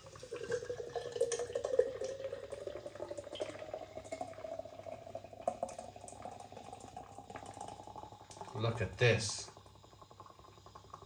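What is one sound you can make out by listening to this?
Beer pours into a glass with a gurgle that rises in pitch as the glass fills.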